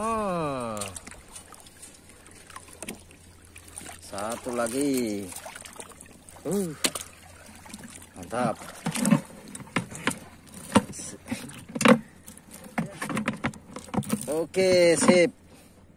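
Shallow water splashes.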